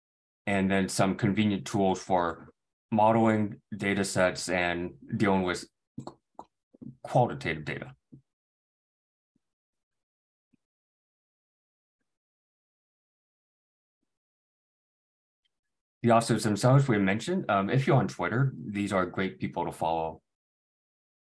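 A young man speaks calmly into a close microphone, with pauses.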